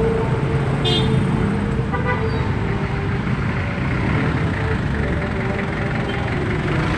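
Engines idle and rumble in a busy street, heard close by.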